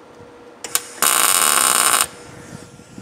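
An electric welder crackles and hisses in a short burst.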